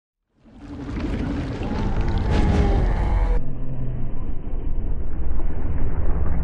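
A deep, rumbling whoosh of energy swells and grows louder.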